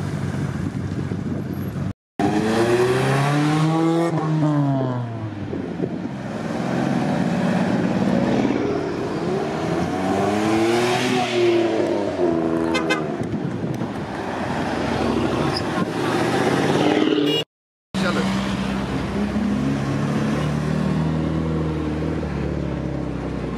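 Sports car engines rev loudly and roar past, one after another.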